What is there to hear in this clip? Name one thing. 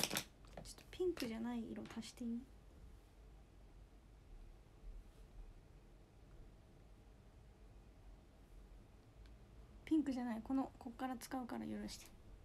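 A young woman speaks softly and close to the microphone.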